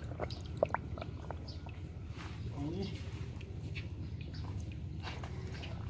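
Water gently laps and trickles around a submerged pipe.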